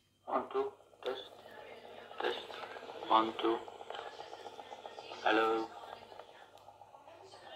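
A small cassette player plays back a muffled recording through its tiny speaker.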